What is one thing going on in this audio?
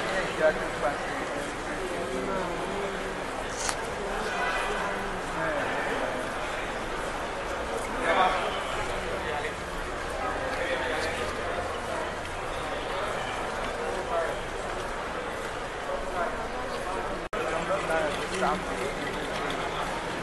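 Luggage trolley wheels rattle over a hard floor.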